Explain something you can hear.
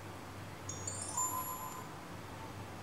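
A phone gives off short high beeps.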